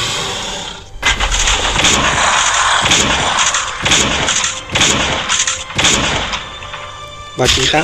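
Heavy blows land in quick succession during a brawl.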